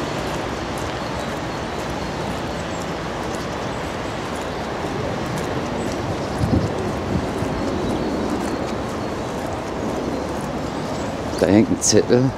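Wind rumbles outdoors across the microphone.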